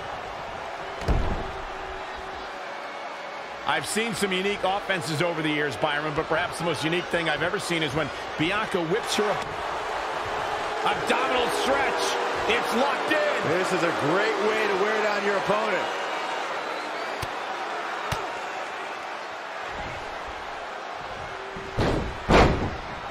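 A body slams heavily onto a wrestling mat.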